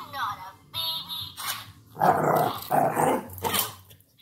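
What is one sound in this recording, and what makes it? A dog whines and yelps close by.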